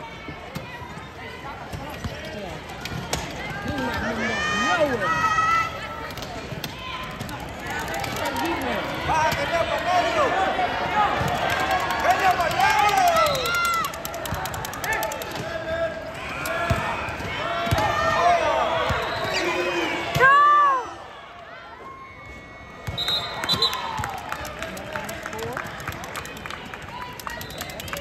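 Wheelchair tyres squeal sharply on a hard court in a large echoing gym.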